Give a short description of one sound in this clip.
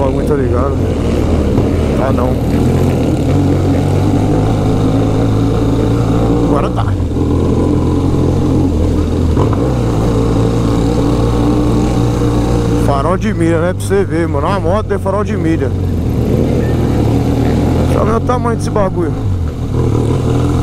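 A motorcycle engine hums steadily up close as it rides along a street.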